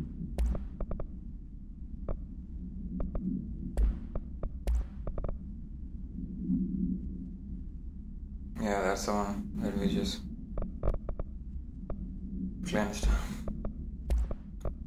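Short soft clicks tick as a game menu is browsed.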